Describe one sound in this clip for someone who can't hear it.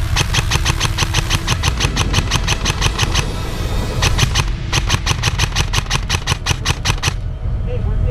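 A paintball gun fires in rapid bursts close by.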